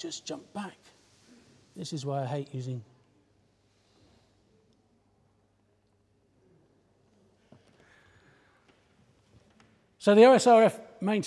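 A man speaks to an audience in a roomy hall, pausing between phrases.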